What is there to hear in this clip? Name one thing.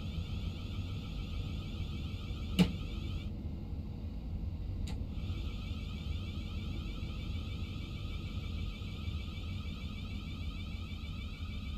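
An electric motor whines steadily.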